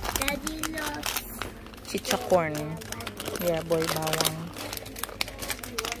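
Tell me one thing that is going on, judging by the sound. A plastic snack bag crinkles as a hand handles it.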